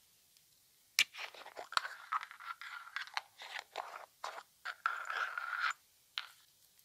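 Fingernails tap and scratch on a plastic container.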